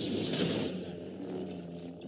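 Sparks crackle and sputter.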